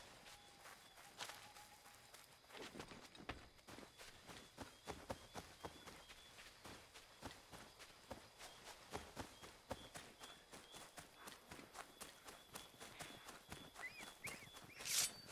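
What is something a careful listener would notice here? Footsteps rustle quickly through grass and undergrowth.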